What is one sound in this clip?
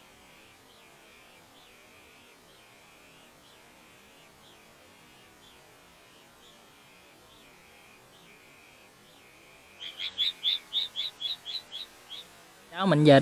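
A bird chirps in quick, repeated calls.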